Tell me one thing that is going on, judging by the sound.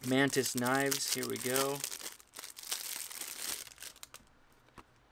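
Plastic wrapping crinkles.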